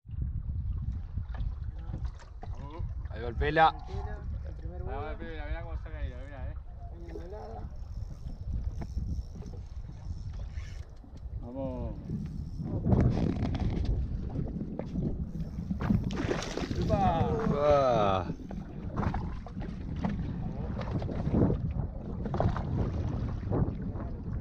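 Water laps against a boat's hull.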